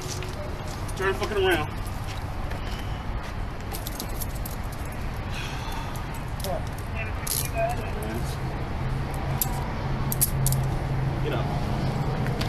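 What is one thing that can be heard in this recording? A man speaks in short bursts nearby, outdoors.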